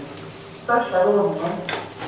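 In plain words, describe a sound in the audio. A lift button clicks as it is pressed.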